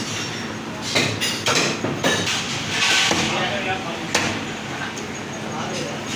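A cleaver chops down onto a wooden block with sharp thuds.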